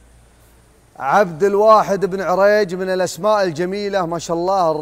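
A man talks loudly and steadily into a microphone.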